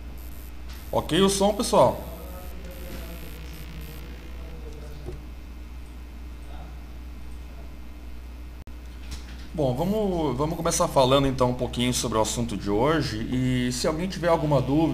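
A man speaks calmly into a microphone, as if on an online call.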